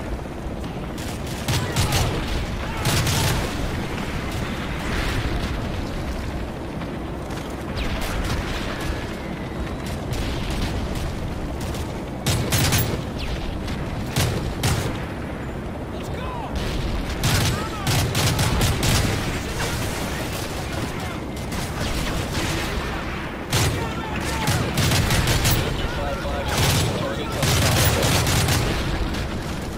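Rifle shots ring out in short, loud bursts.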